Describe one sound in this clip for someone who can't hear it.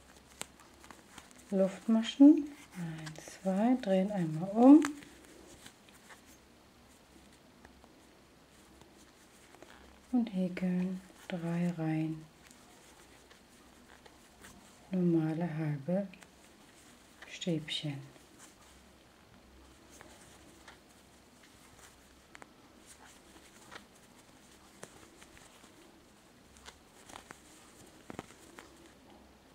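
A crochet hook softly rubs and clicks against yarn.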